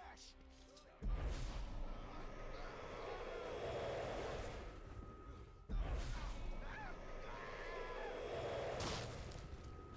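Magic blasts burst with loud whooshing hits.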